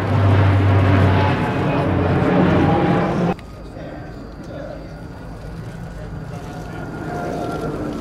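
A twin-engine turboprop transport plane drones overhead.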